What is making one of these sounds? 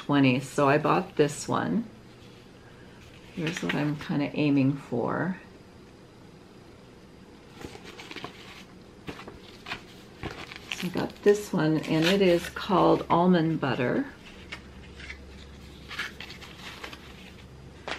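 Paper and fabric rustle.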